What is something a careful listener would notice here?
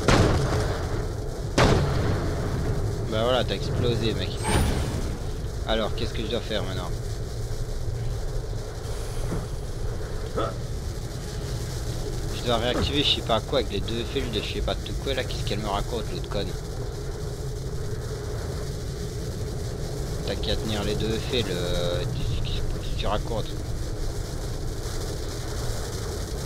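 A steady low rumble of game sound plays throughout.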